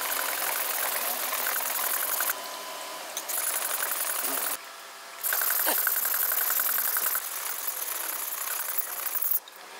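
A knife blade scrapes rhythmically back and forth across a wet whetstone.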